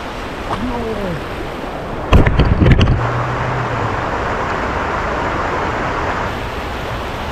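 Water rushes steadily over rocks nearby.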